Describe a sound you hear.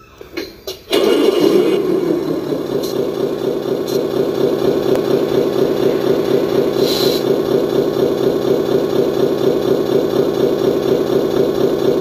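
A model truck's engine sound rumbles steadily with a pulsing beat.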